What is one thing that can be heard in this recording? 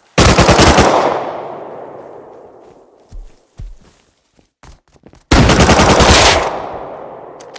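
A rifle fires two rapid bursts that echo away outdoors.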